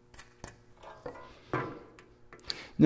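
A hand saw rasps through wood.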